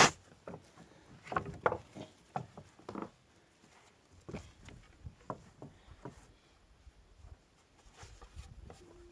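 Wooden boards clatter and knock against each other.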